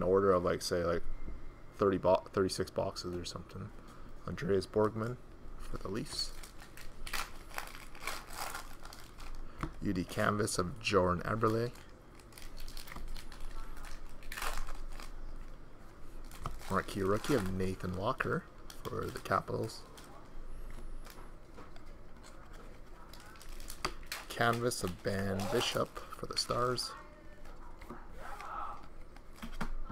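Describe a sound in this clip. Trading cards slide and flick against each other as they are shuffled.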